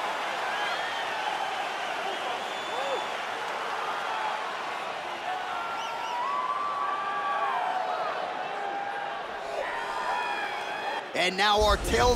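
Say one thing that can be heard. A large crowd cheers and whistles in a big arena.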